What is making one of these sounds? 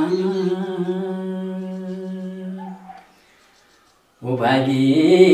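An elderly man sings in long, drawn-out notes close by.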